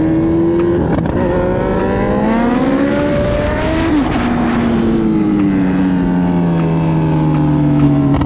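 A motorcycle engine revs up and down as the bike speeds along.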